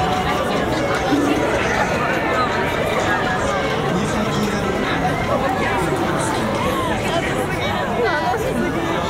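A large crowd chatters all around outdoors.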